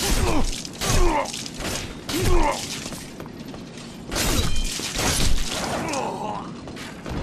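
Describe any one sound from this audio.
Metal weapons clash and strike in heavy blows.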